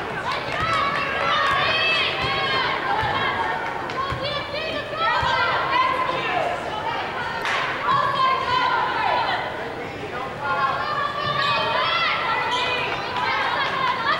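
A basketball is dribbled on a hardwood floor.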